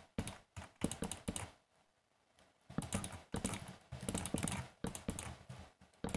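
Wooden blocks break with dry crunching knocks.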